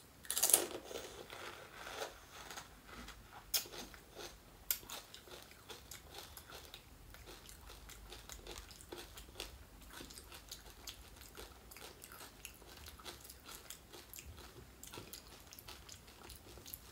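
A woman chews and slurps softly up close.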